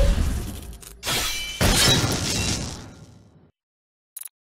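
Electric bolts crackle and boom loudly.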